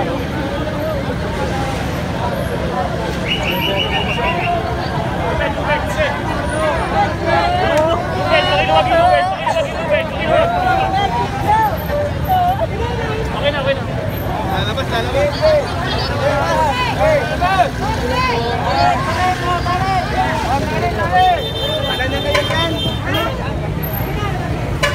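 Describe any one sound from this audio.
A large crowd chatters and calls out loudly all around, outdoors.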